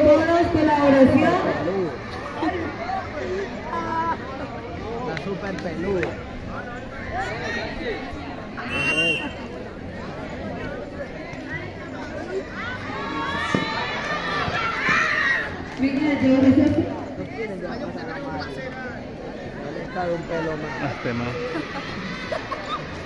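A crowd of young people cheers and chatters outdoors.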